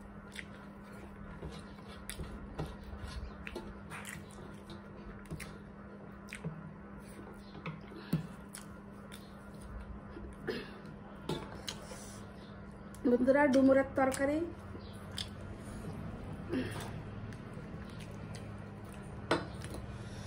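Fingers scrape and tap on metal plates while eating.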